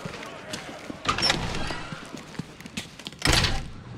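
Heavy metal doors swing open.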